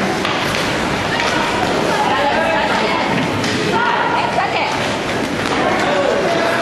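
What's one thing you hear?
Young players shout to each other across the rink.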